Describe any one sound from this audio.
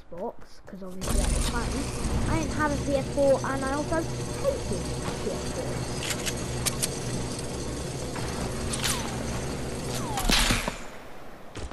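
A zipline whirs steadily as a game character rides along it.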